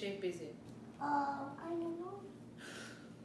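A young girl speaks softly in a high voice.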